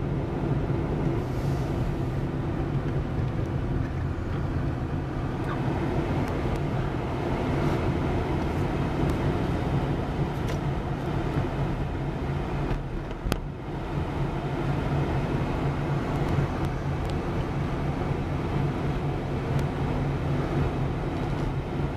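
A car engine hums steadily with road noise inside the cabin.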